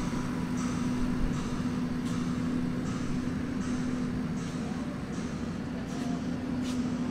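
An electric anchor winch motor hums steadily.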